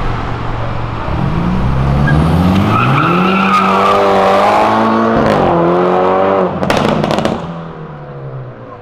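A car engine revs up loudly and roars away.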